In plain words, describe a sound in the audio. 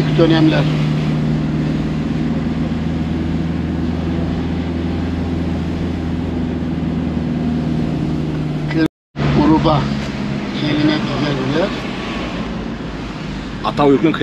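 A van engine hums steadily from inside the cab.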